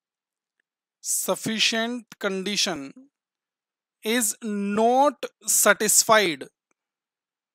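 A man speaks calmly and explains into a close microphone, with pauses.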